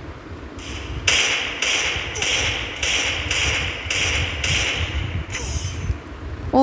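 Gunshots ring out in a quick, even series.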